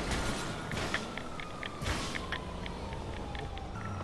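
A wrecked car burns with a crackling fire.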